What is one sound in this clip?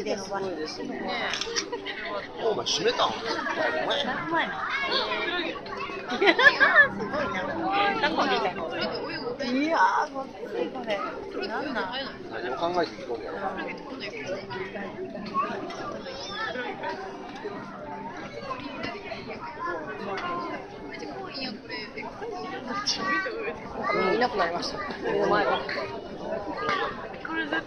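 Adults and children chatter and call out nearby in a busy, echoing hall.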